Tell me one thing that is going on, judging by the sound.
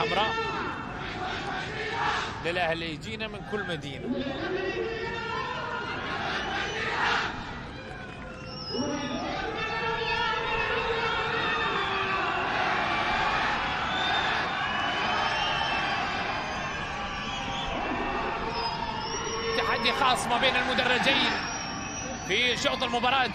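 A large crowd of fans chants and sings loudly outdoors.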